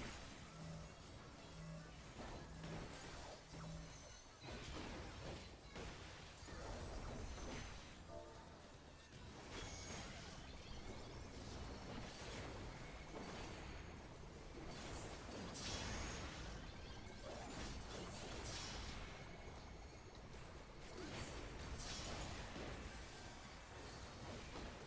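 Spell effects whoosh and crash in a fast battle.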